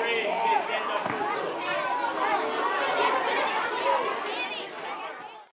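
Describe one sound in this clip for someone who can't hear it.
A crowd of children chatter and shout excitedly in a large echoing hall.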